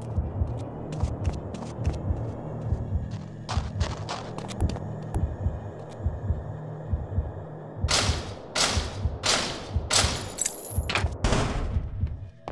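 Footsteps thud on a floor.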